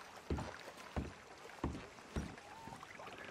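Boots thud heavily on wooden planks.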